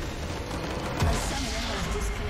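A loud game explosion booms.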